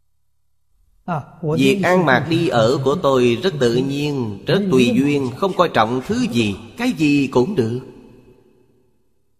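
An elderly man speaks calmly and warmly close to a microphone.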